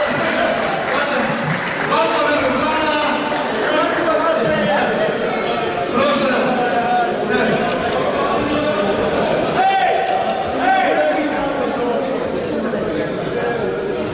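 A crowd of people chatters loudly in a large echoing hall.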